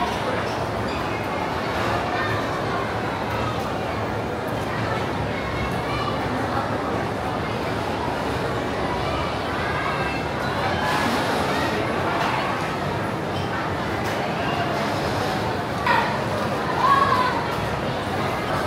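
Many people chatter and murmur all around.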